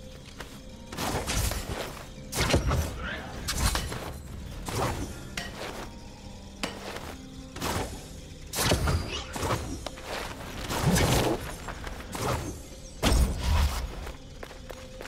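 Sword swings and heavy impacts whoosh and thud in quick bursts.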